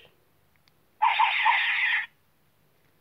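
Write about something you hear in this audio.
A toy plays a short, loud electronic sound effect.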